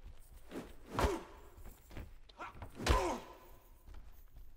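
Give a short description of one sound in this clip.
A creature grunts and groans when hit.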